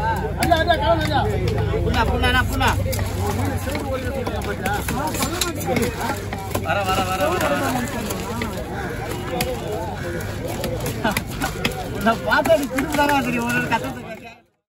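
A cleaver chops into a wooden block with repeated dull thuds.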